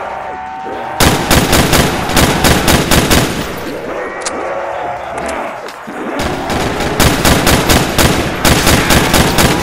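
A rifle fires in rapid bursts of loud shots.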